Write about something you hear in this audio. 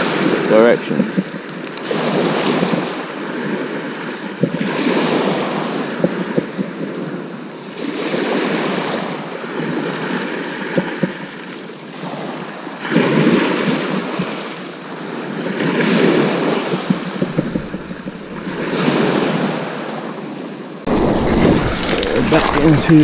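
Waves break and wash up a shingle beach.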